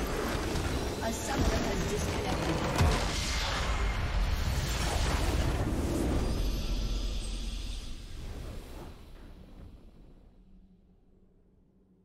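A crystal structure shatters with a loud rumbling blast that slowly fades.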